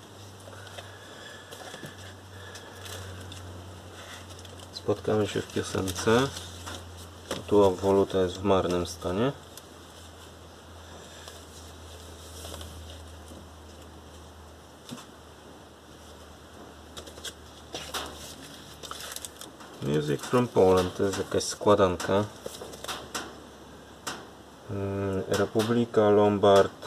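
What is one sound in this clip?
Cardboard record sleeves rustle and slide against each other as they are flipped through.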